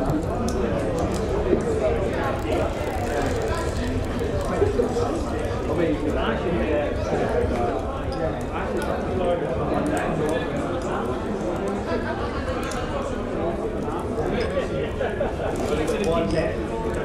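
A crowd of men and women chatter all at once in a busy room.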